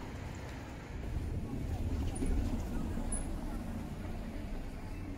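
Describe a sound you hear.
A car rolls by over cobblestones.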